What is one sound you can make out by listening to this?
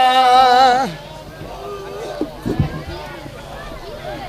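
A crowd of men murmurs and calls out in the background.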